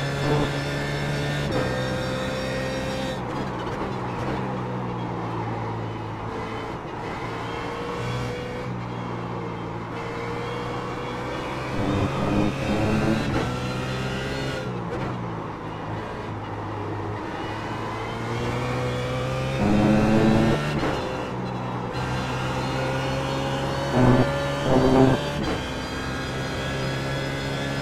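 A racing car engine roars steadily, rising and falling in pitch as it shifts gears.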